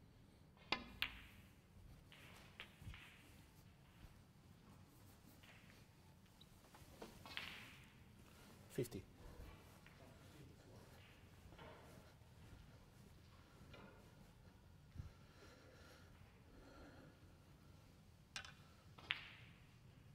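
Snooker balls knock together with crisp clicks.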